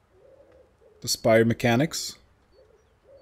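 A young man speaks briefly into a microphone close by.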